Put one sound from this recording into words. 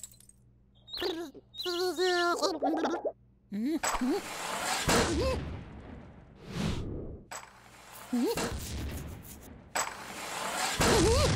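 A small cartoon chick chirps and squeaks in a high voice.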